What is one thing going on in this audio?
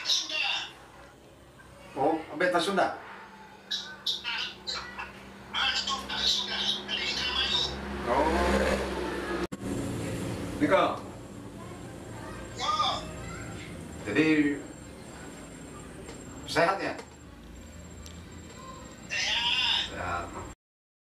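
An elderly man talks into a phone, close by.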